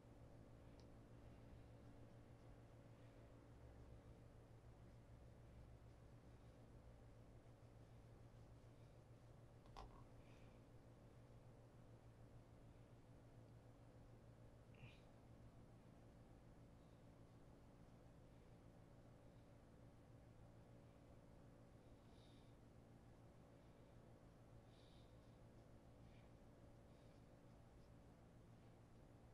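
Fingers rub and scrape softly against shoe leather.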